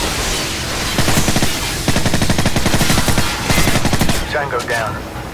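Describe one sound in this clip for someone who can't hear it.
A suppressed submachine gun fires in rapid bursts.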